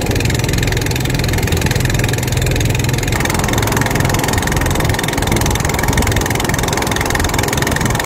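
A small boat's motor drones as the boat travels across open water.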